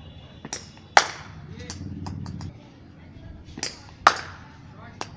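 A cricket bat sharply strikes a ball outdoors.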